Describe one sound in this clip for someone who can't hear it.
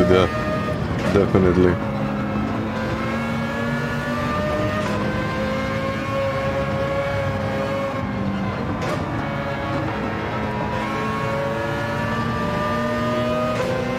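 A racing car engine roars at high revs, shifting gears now and then.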